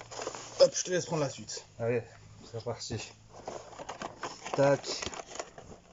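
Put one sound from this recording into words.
A cardboard box scrapes and rustles as it is handled.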